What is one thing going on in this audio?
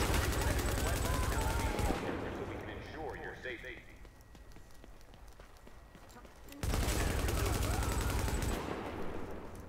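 Automatic gunfire rattles in rapid, loud bursts.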